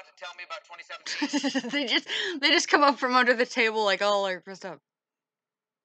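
A young woman talks with animation through a loudspeaker.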